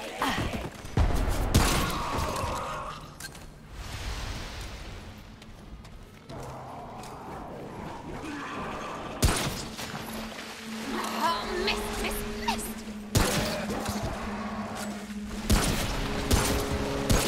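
Gunshots ring out in bursts.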